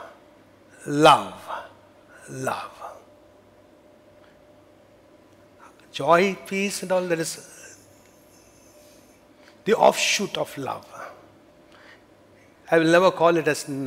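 A middle-aged man speaks with animation through a headset microphone, in bursts with pauses.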